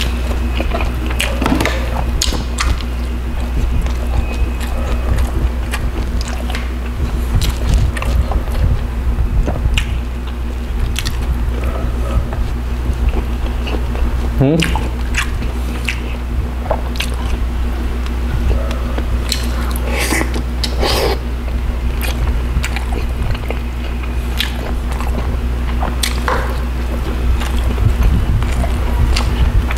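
Fingers pull and squish soft fish flesh and rice.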